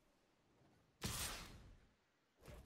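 A short whooshing game effect plays.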